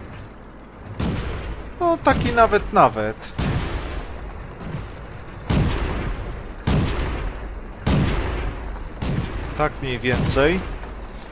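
Tank engines rumble low and steadily.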